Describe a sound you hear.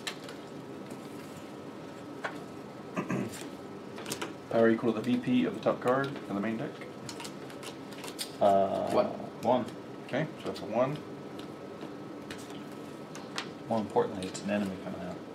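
Playing cards tap and slide on a wooden table.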